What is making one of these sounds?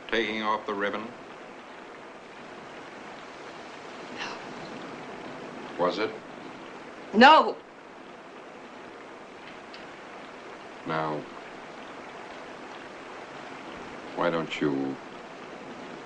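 A man speaks quietly and questioningly, close by.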